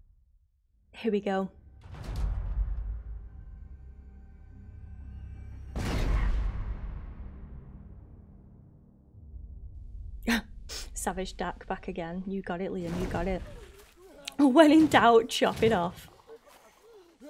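A young woman speaks into a microphone, casually and close up.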